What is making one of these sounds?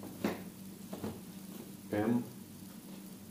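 Fabric rustles as clothes are handled and set down.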